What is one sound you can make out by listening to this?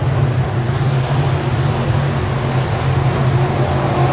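A race car's engine roars as it passes close by.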